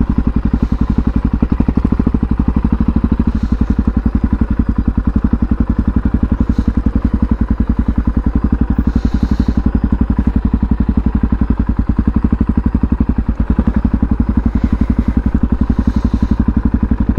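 A motorcycle engine idles close by with a steady, rapid low thumping.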